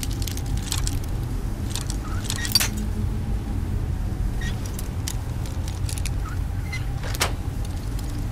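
A metal lockpick clicks and scrapes inside a lock.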